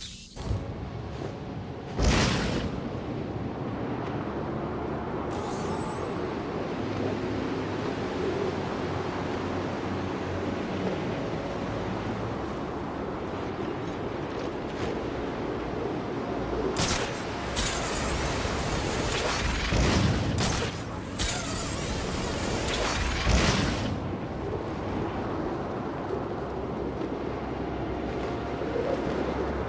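Strong wind rushes steadily past.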